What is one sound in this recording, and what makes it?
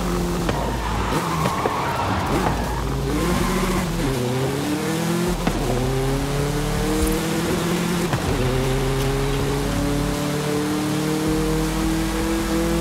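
A small car engine revs hard and climbs through the gears.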